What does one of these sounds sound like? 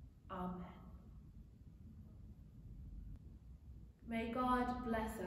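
A woman speaks calmly into a microphone in a softly echoing room.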